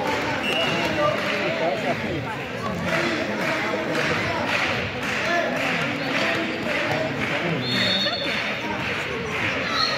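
Spectators nearby talk and cheer.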